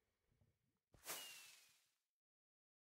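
A firework whooshes up into the air.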